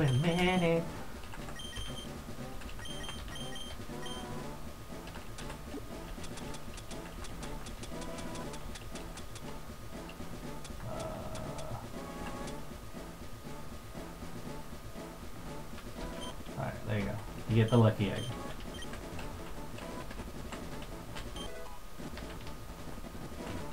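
Game music plays with a bouncy beat.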